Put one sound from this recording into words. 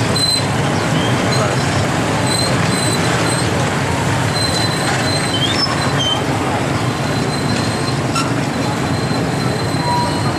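Many motorbike engines idle and putter nearby.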